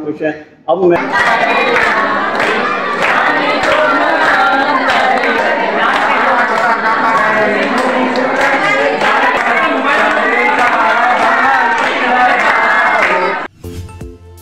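A crowd of men and women chant together.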